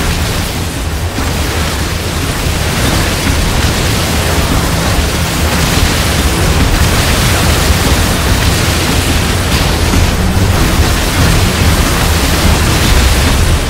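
Gunfire and explosions rattle loudly and without pause.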